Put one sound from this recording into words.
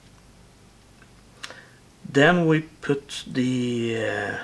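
Small metal parts click together.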